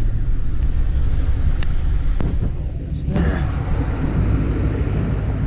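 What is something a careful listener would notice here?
A truck engine rumbles low and steady close by.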